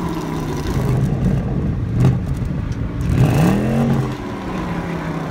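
A car engine idles with a deep exhaust rumble.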